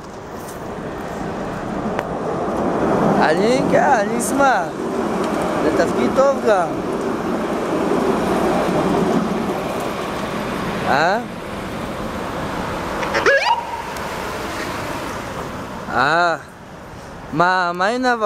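Traffic rumbles past on a road outdoors.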